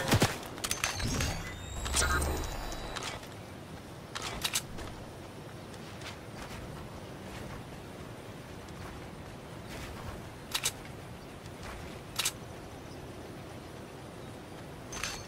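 Footsteps patter quickly over grass and wood.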